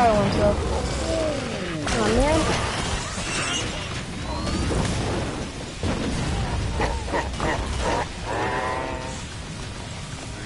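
A creature growls and snarls.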